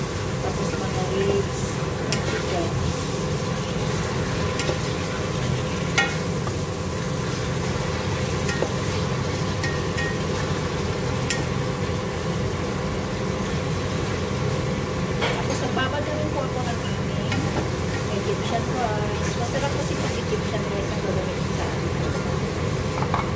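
A wooden spoon scrapes and knocks against a metal pot.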